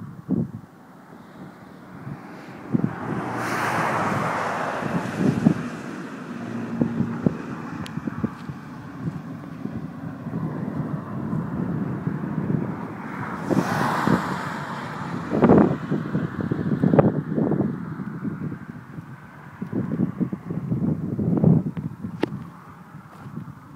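Wind buffets and rumbles outdoors in gusts.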